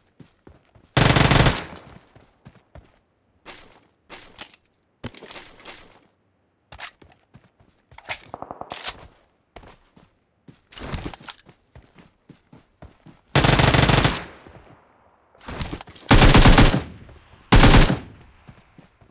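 Rapid gunfire bursts out in short, loud volleys.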